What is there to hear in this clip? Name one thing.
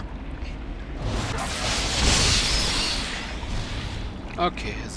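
A magic spell bursts with a loud rushing whoosh.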